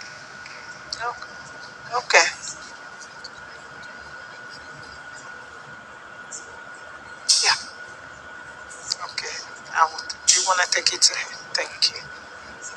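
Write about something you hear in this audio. A man speaks through a loudspeaker in a large hall.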